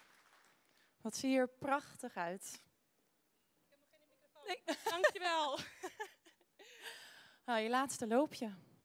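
A young woman speaks cheerfully through a microphone in a large hall.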